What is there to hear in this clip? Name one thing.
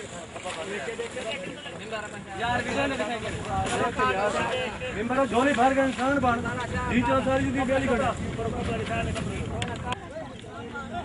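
Several men talk loudly nearby outdoors.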